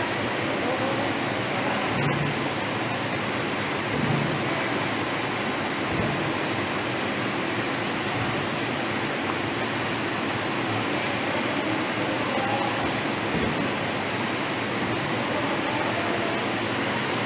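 A labelling machine whirs and rattles as plastic bottles pass through.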